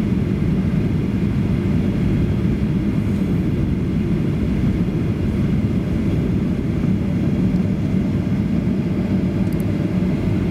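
Aircraft tyres rumble on the runway.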